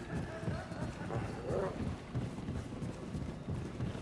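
Boots clatter down wooden stairs.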